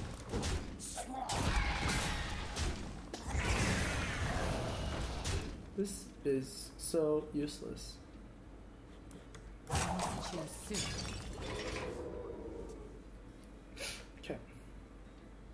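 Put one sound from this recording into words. Video game effects whoosh and chime.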